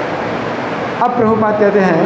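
An elderly man chants loudly through a microphone.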